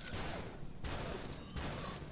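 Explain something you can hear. A figure shatters with a glassy crash.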